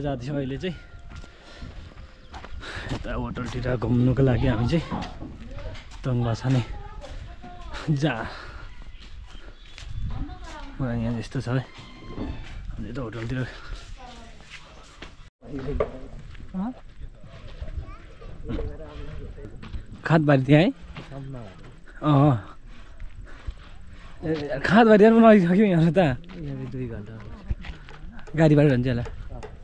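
Footsteps crunch on a dirt road.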